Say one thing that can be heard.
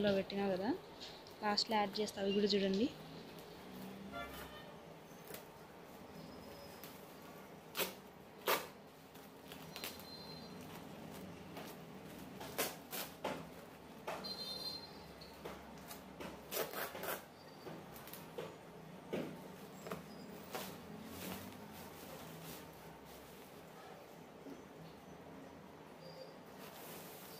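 Woven plastic rustles and crinkles as hands pull the sack open.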